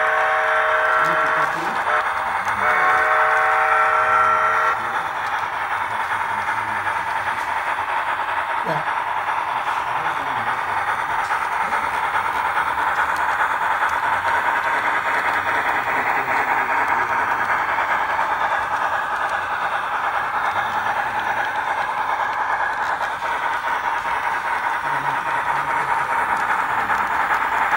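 A model train runs steadily along the track with a whirring rumble.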